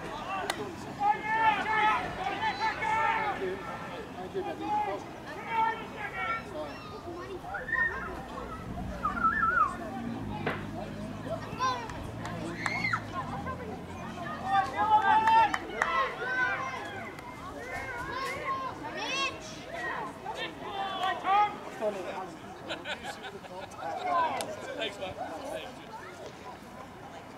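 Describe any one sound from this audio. Young players shout and call to each other outdoors across an open field.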